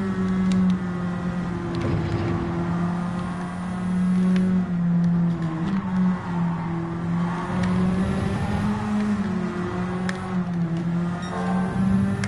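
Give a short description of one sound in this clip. A racing car engine roars steadily, its pitch shifting up and down with gear changes.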